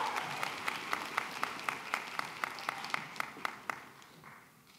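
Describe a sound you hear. One person claps loudly and steadily close by.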